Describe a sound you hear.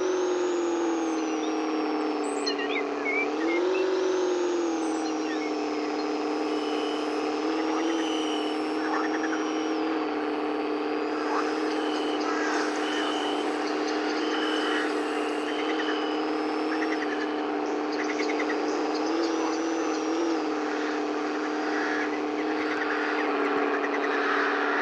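A car engine hums steadily and revs up briefly.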